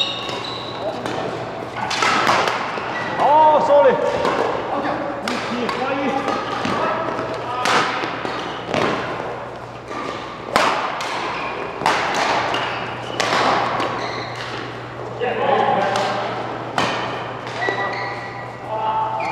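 Shoes squeak sharply on the court floor.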